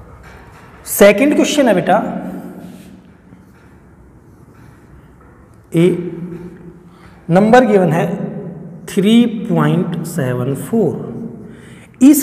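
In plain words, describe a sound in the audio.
A man speaks clearly and calmly, explaining, close by.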